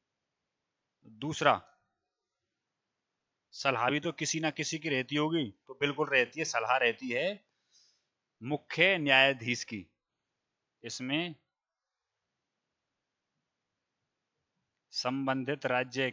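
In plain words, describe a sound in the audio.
A man speaks calmly into a headset microphone, in short bursts with pauses.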